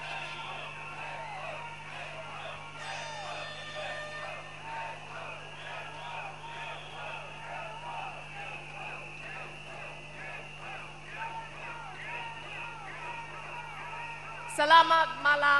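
A large crowd cheers and chants.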